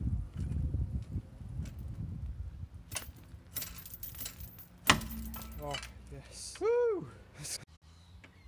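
A steel chain clanks and rattles against a steel wheel.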